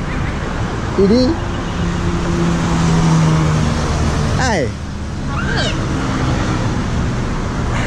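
A woman speaks from inside a car.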